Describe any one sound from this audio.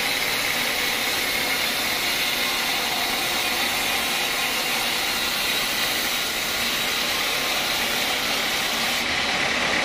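A band saw runs with a steady high whine.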